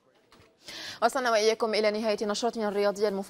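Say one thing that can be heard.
A woman speaks clearly and calmly, close to a microphone.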